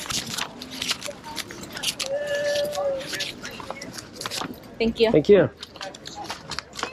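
Paper banknotes rustle as they are counted.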